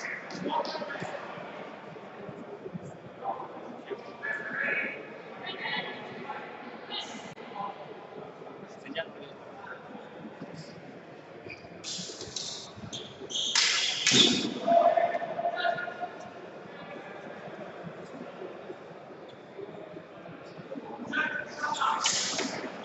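Many people talk and call out in a large echoing hall.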